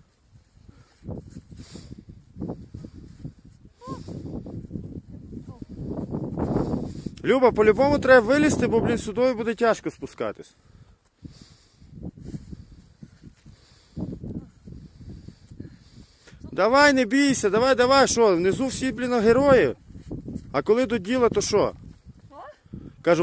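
Boots crunch on crusty snow and scrape on rock.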